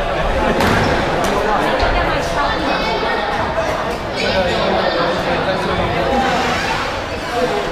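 A young man talks casually nearby in an echoing room.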